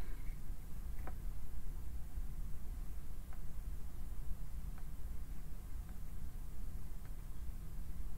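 Cards tap and click softly on a table.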